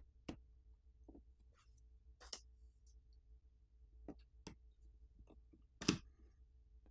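A pin clicks into a phone's tray slot and the tray pops out.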